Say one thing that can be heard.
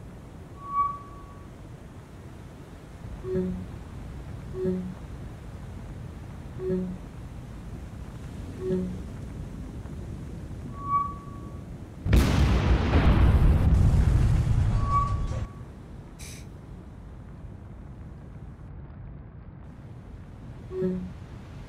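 Waves wash against a ship's hull.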